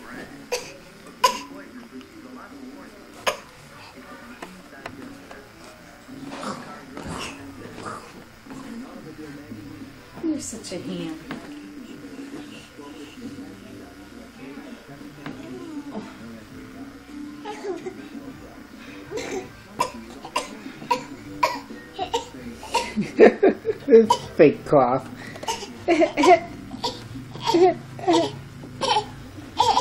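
A baby babbles and squeals happily close by.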